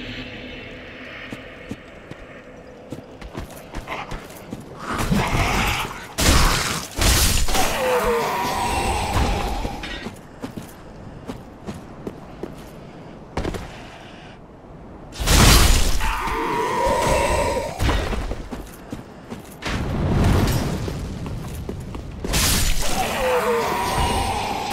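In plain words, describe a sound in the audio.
Armoured footsteps crunch and clank over rough ground.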